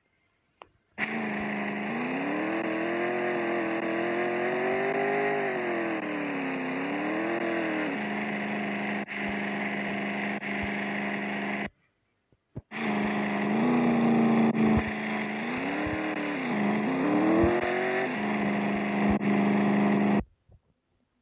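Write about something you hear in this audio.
A car engine hums and revs up and down.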